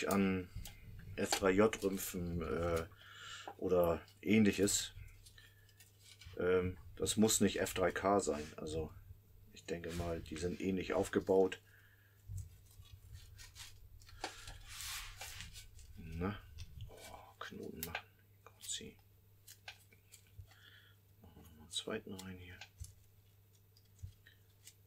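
Thin wire crinkles and scrapes between gloved fingers.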